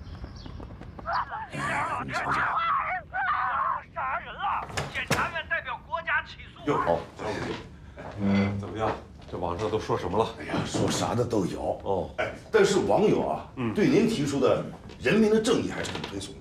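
A middle-aged man answers in a calmer voice nearby.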